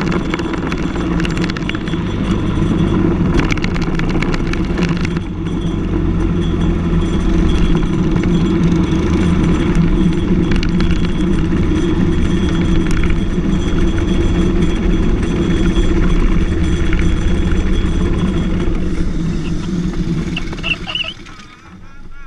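Racing car engines roar steadily on a track.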